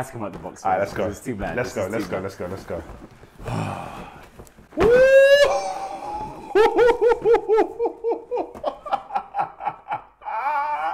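Two young men talk and laugh with excitement close by.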